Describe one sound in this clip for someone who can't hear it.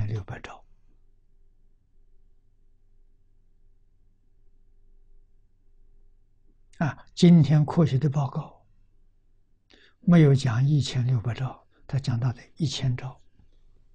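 An elderly man speaks calmly and clearly into a microphone, with long pauses.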